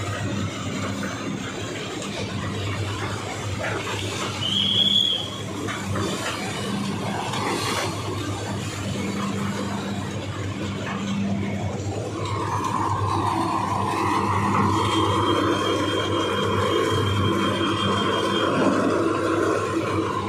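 A machine hums loudly and steadily.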